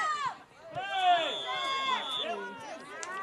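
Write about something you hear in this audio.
A referee's whistle blows one long, steady blast.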